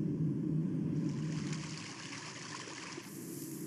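Water rushes over stones in a shallow river.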